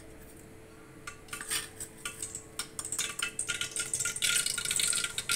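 Hot oil sizzles softly in a pot.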